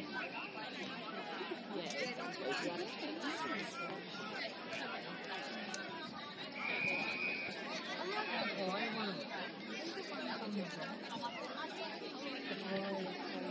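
A crowd of young women chatters at a distance outdoors.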